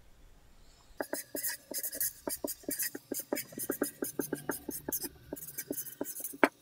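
A marker squeaks and scratches as it writes on a board.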